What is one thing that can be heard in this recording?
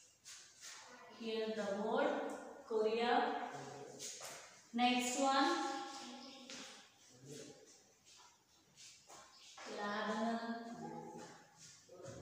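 A woman speaks clearly and loudly nearby.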